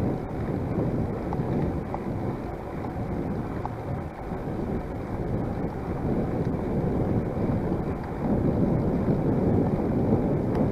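Bicycle tyres hum softly on smooth pavement.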